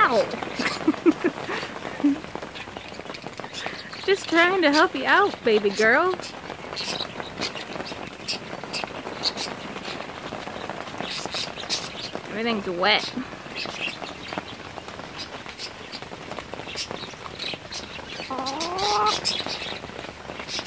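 A chicken clucks and chirps close by.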